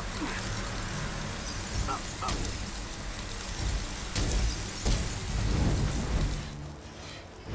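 An ice blast hisses in a long, rushing burst.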